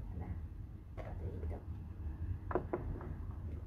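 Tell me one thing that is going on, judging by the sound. A plastic cup is set down on a wooden table with a light knock.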